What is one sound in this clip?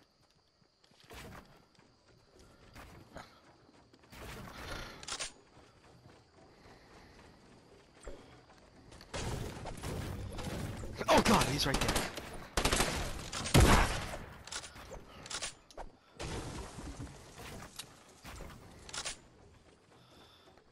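Wooden walls and ramps are built with quick knocks and clatters.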